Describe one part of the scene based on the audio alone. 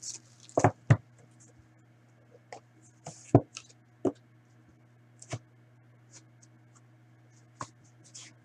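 Cardboard taps and scrapes as a box is handled.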